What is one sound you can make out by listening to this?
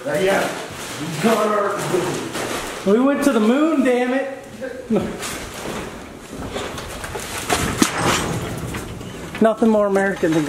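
A plastic trash bag rustles.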